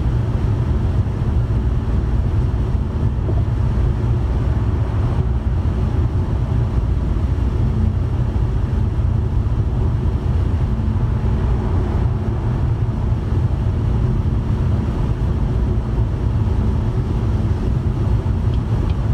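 A car's engine and tyres rumble steadily at highway speed.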